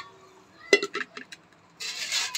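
An aluminium pot clinks as it is set down.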